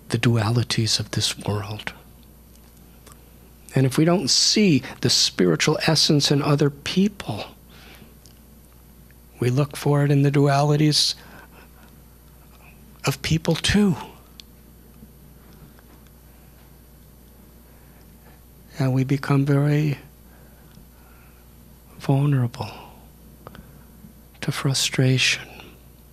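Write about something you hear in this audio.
An elderly man speaks calmly into a microphone, pausing often.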